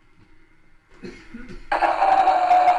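A gramophone needle clicks and scrapes onto a spinning record.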